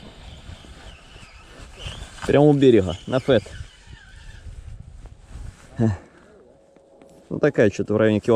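A fishing reel whirs softly as its handle is turned.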